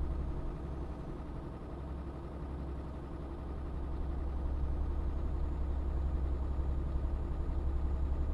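A truck engine drones steadily with a low hum, growing slightly louder.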